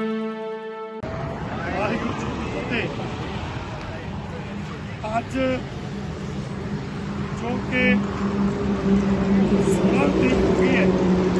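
An elderly man speaks steadily into a microphone, heard through a loudspeaker.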